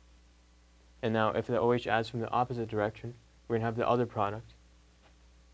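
A man speaks calmly, as if explaining.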